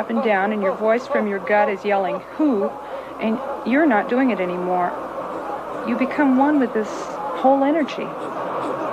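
A young woman cries out close by.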